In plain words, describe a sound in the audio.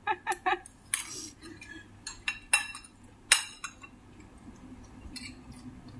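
A young woman bites and chews crunchy food.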